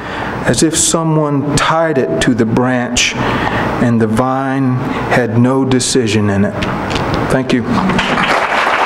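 A middle-aged man reads aloud calmly into a microphone in a slightly echoing room.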